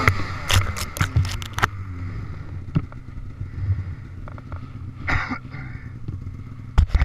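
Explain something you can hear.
A snowmobile engine idles with a low steady rumble.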